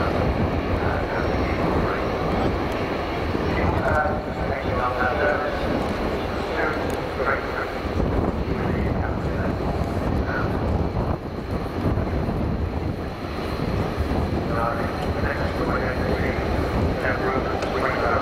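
A jet bomber roars loudly overhead with a deep rumbling howl.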